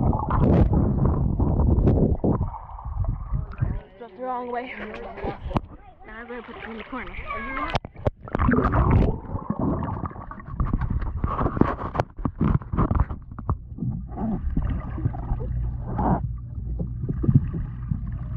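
Muffled underwater bubbling and gurgling comes and goes.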